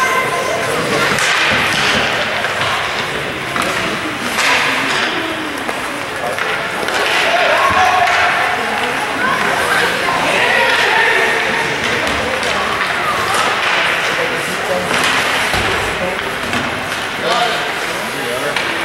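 Spectators talk and cheer nearby.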